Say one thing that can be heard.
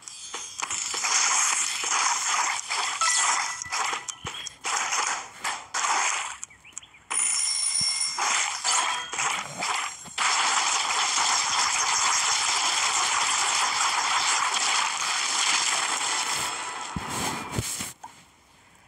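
Quick whooshing swipes and juicy splats sound in rapid succession.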